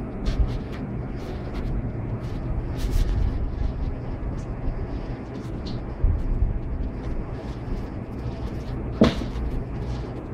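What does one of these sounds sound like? A paper sleeve crinkles in a hand.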